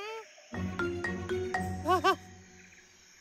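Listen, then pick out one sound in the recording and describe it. A cartoon monkey chatters and squeals excitedly.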